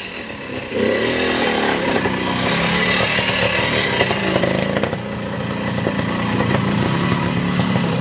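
A motorcycle engine revs and sputters close by as it climbs a rough slope.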